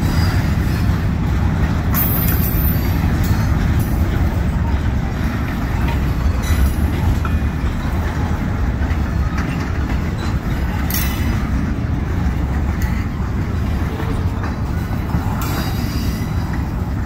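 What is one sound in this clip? A long freight train rumbles past close by, wheels clattering on the rails.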